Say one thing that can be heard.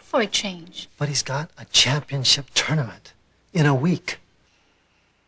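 A man speaks in a low, serious voice, close by.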